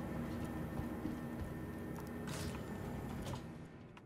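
A heavy metal door slides open with a hiss.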